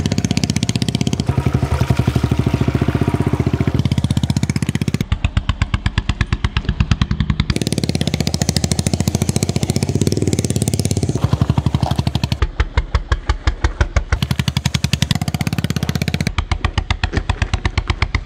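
Motorcycle tyres crunch over loose gravel and stones.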